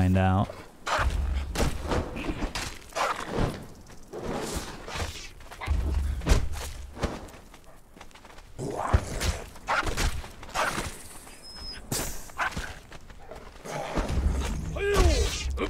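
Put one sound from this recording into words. Weapons strike and thud in a fight.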